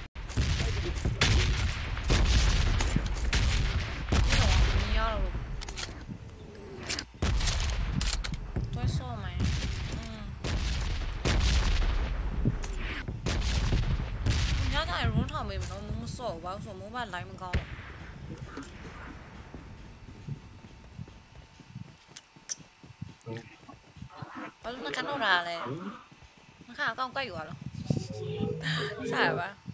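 A young woman talks with animation into a microphone, close up.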